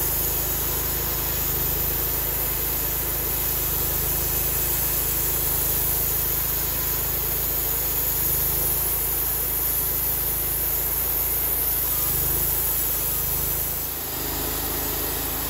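A gasoline engine runs under load on a portable bandsaw mill.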